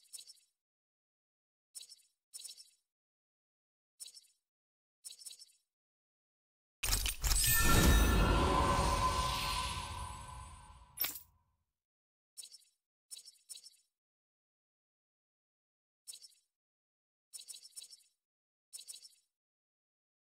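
Soft menu clicks tick as a cursor moves between options.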